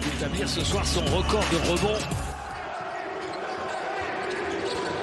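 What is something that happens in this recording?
A crowd cheers loudly in a large echoing arena.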